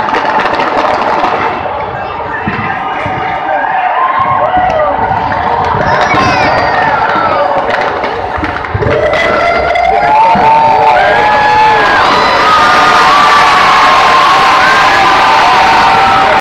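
Fireworks go off with deep booming bangs.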